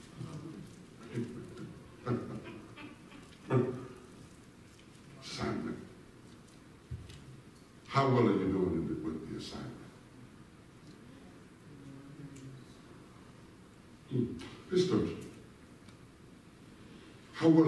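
A man preaches with animation through a loudspeaker in a large echoing hall.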